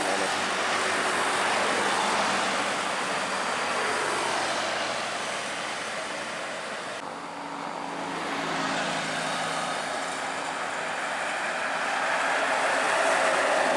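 Road traffic hums steadily.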